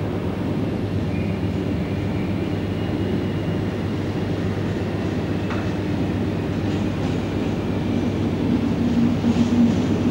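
A diesel locomotive engine idles with a steady low drone.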